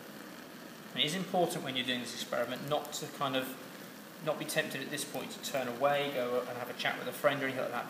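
A man talks calmly and explains nearby.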